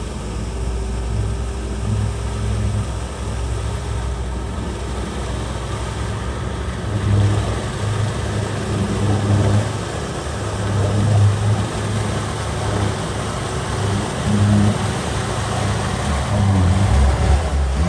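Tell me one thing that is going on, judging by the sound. Water splashes and churns under the vehicle's wheels.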